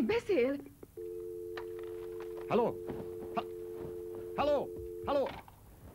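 A phone handset gives off a steady dial tone.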